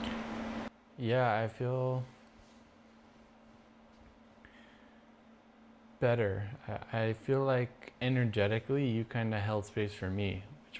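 A second man speaks calmly nearby in reply.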